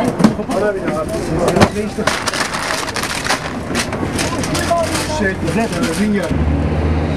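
Equipment clatters and knocks nearby.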